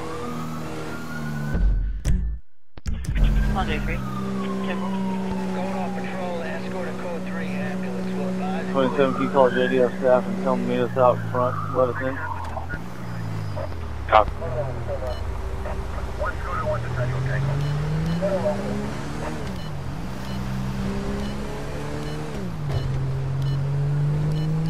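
A car engine hums steadily and revs up and down while driving.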